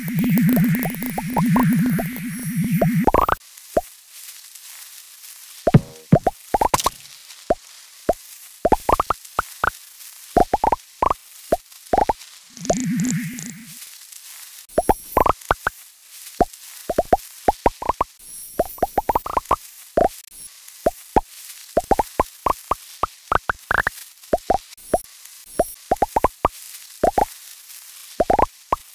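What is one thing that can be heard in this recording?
Short rising electronic blips chirp quickly again and again.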